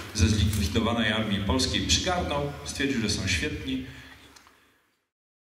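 An older man speaks into a microphone in an echoing hall.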